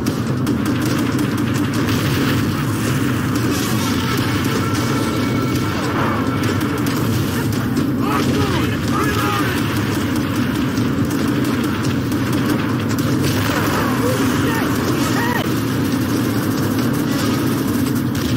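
Tank engines rumble and clank close by, steadily.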